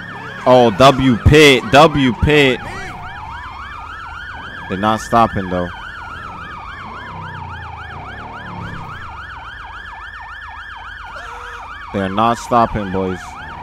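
A police siren wails, rising and falling in a steady cycle.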